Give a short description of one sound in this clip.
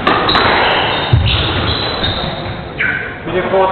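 A squash ball smacks against the walls of an echoing court.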